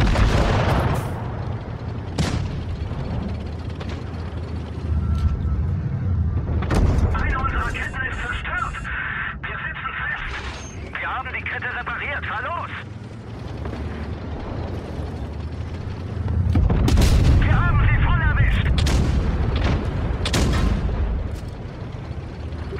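A tank engine rumbles steadily.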